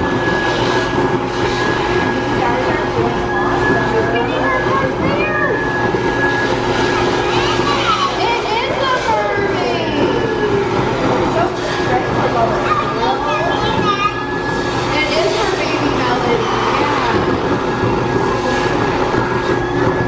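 A stuffing machine whirs and blows steadily.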